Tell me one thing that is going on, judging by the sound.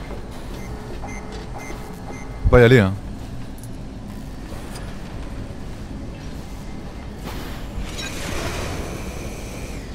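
Bright electronic music plays steadily throughout.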